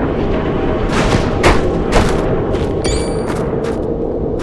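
Blades clash and strike in a brief fight.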